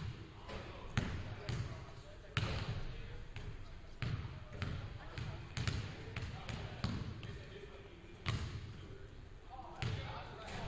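Basketballs bounce on a hardwood floor, booming in a large echoing gym.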